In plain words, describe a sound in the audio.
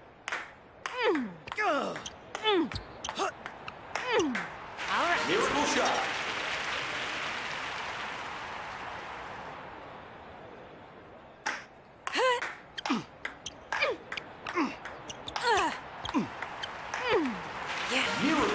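A table tennis ball clicks back and forth quickly on paddles and a table.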